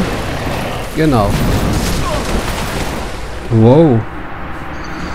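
A winged beast lets out loud rising and falling shrieks.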